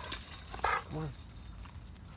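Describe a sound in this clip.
A dog whines with a high, yelping cry.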